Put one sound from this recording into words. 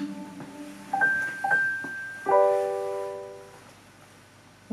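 A smart speaker plays a short chime.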